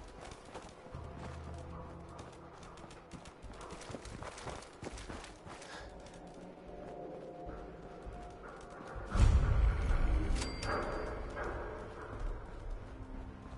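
Footsteps crunch through dry brush and rubble.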